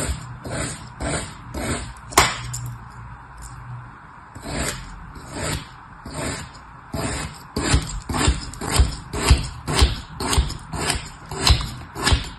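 A knife slices through soft, crumbly sand with repeated gentle scraping cuts.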